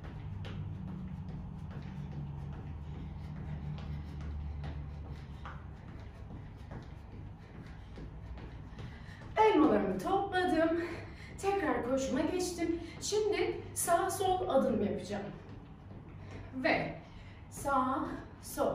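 Sneakers thud softly on a floor as a woman jogs in place.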